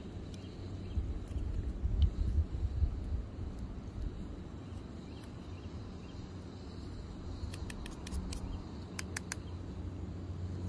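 A hand coffee grinder crunches and rattles as its handle turns.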